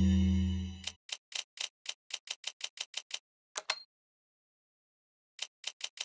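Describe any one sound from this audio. Short menu clicks tick quickly, one after another, as a game selection moves.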